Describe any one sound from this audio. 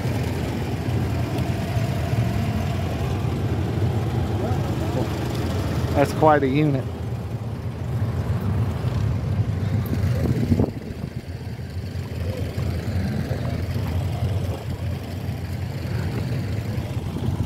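A large old engine runs with a steady low chugging rumble close by.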